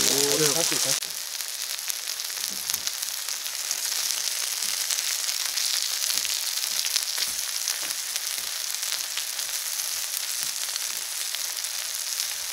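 Chopsticks click against a grill plate.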